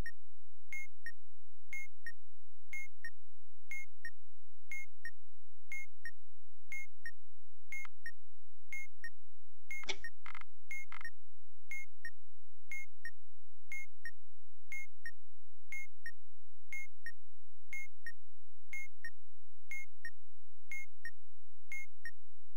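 A countdown timer ticks steadily, about once a second.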